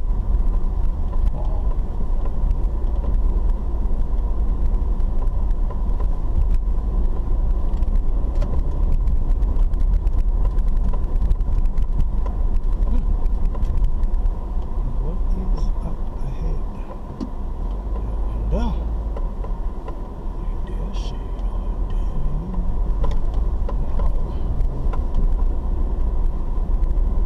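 Tyres rumble and crunch over a rough dirt road.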